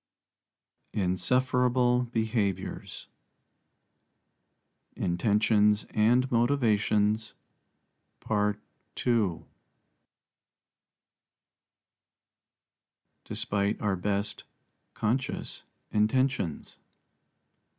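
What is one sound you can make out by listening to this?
A middle-aged man speaks slowly and calmly into a close microphone, with long pauses.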